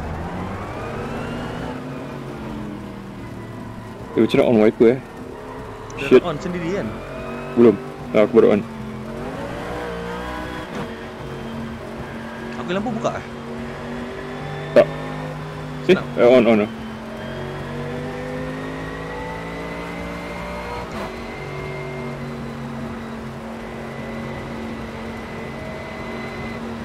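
A racing car engine roars and changes pitch as gears shift.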